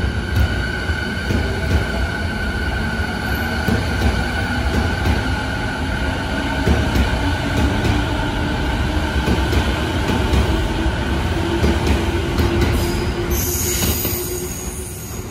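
A train rushes past close by with a loud rumble and clatter of wheels.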